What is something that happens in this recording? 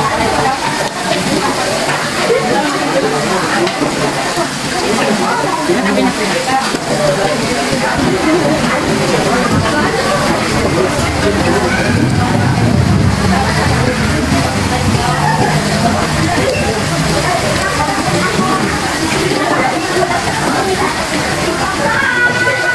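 Many people chatter nearby in a busy room.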